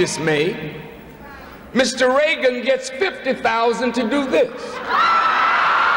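A man speaks forcefully through a microphone and loudspeakers in a large echoing hall.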